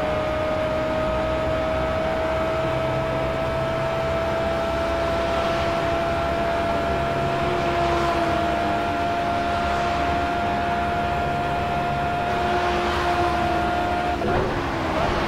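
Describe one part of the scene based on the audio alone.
A racing car engine roars at high speed, its pitch climbing slowly and steadily.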